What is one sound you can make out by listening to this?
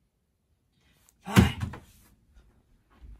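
A chair scrapes as a person gets up.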